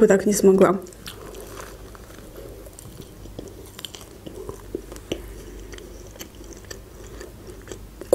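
A young woman bites into soft food and chews it.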